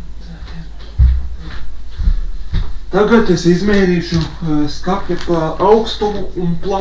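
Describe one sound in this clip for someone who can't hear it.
Footsteps thud across the floor close by.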